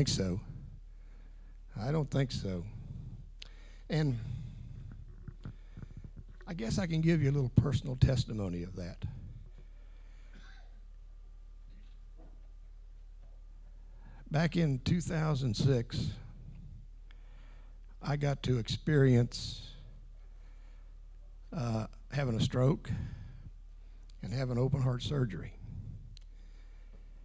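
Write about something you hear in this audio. An older man speaks with animation through a microphone and loudspeakers, pausing between phrases.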